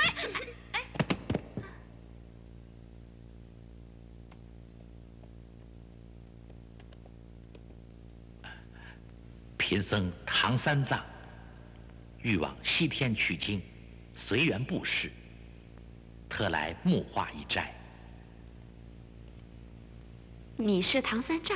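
A young woman speaks, close by.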